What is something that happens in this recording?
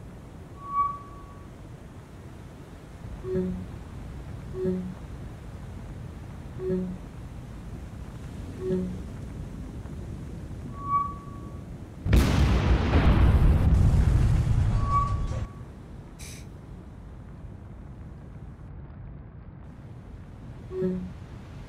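A ship burns with a low roar.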